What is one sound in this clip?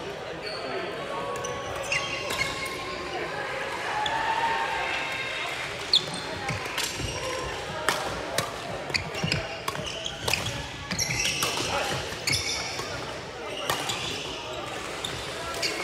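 Rackets strike a shuttlecock back and forth with sharp pops.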